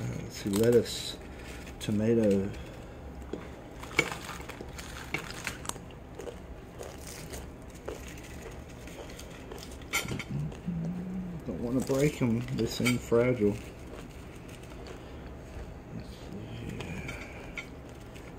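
Crisp taco shells crackle softly as they are handled.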